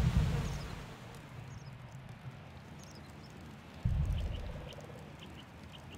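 A magic spell bursts with a deep rumbling boom.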